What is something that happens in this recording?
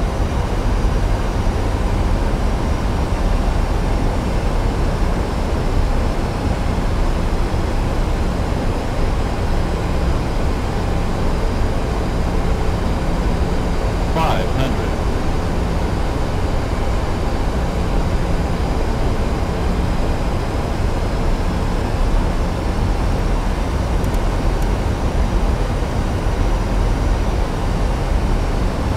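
Jet engines roar steadily through the aircraft cabin.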